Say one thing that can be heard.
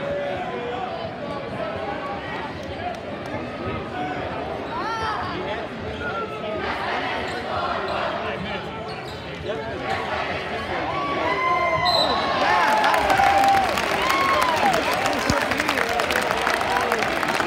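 A large crowd shouts and murmurs, echoing in a large hall.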